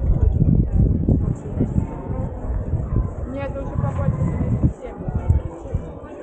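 Adult men and women chat nearby in a crowd outdoors.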